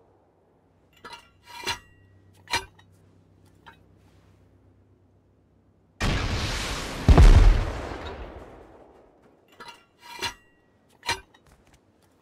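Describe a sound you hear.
A weapon being reloaded makes sharp metallic clicks and clunks.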